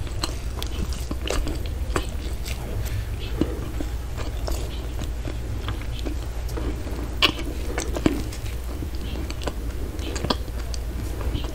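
A glove crinkles and squeaks against a soft pretzel.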